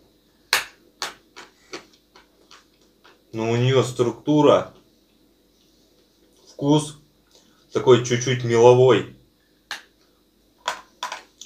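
A young man chews crunchy food with loud crisp crunches.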